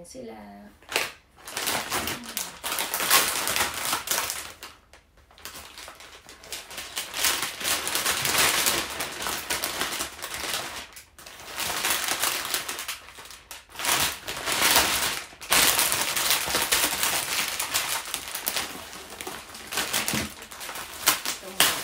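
Plastic wrapping crinkles and rustles loudly close by.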